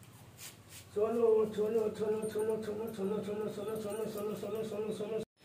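A dog howls steadily.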